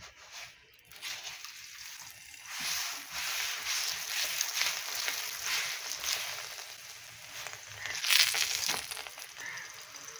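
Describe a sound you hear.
Flatbread sizzles and crackles on a hot griddle.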